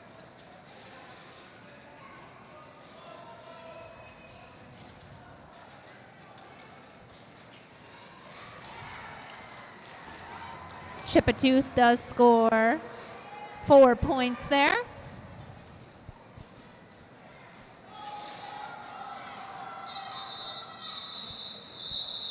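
Skate wheels roll and rumble on a hard floor.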